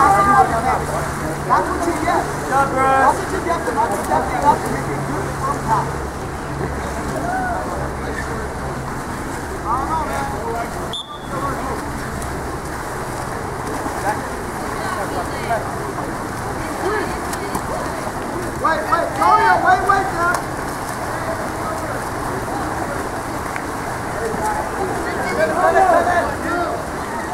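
Swimmers splash and churn through water.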